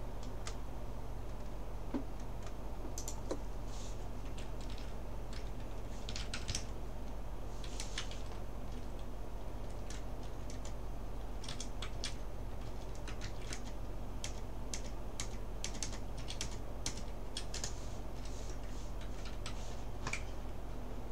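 A computer mouse clicks sharply now and then.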